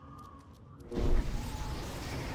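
A heavy blast bursts with a deep boom.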